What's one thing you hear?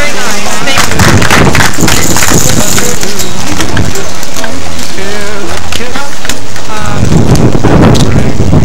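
A small crowd claps outdoors.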